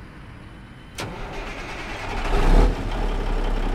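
A big truck engine cranks and starts up.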